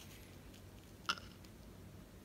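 A plastic medal clicks into a toy watch.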